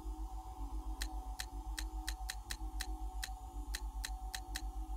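A menu cursor clicks with quick, repeated ticks.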